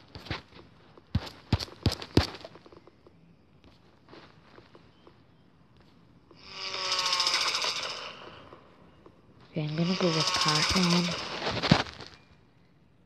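Game sound effects chime and blip.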